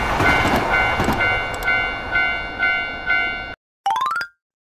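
A railway crossing bell dings steadily and rapidly.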